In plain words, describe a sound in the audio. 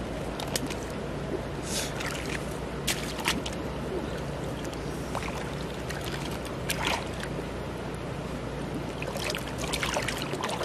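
Water splashes as feet wade in shallow water.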